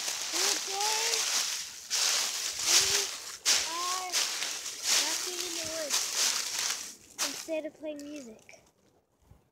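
A young girl talks in a high voice.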